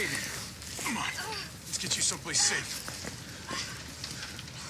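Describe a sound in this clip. A young woman speaks breathlessly, close by.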